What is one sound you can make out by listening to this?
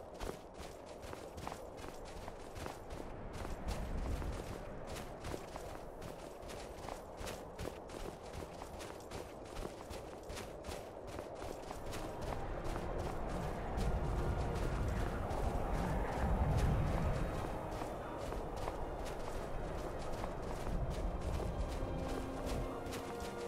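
Footsteps crunch through snow at a steady pace.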